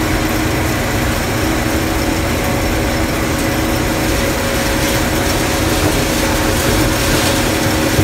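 Dry corn stalks crackle and rustle as the harvester cuts through them.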